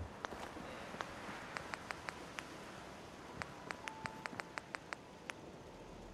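Soft menu clicks tick in quick bursts.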